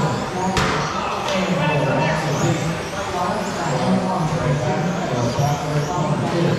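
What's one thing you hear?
Small electric motors of toy race cars whine and rise and fall in pitch.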